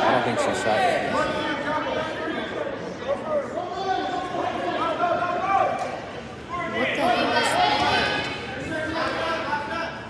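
Wrestlers' feet thump and squeak on a mat.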